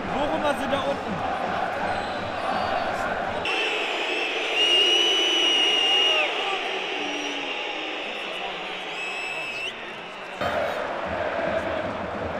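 A large stadium crowd roars and chants nearby.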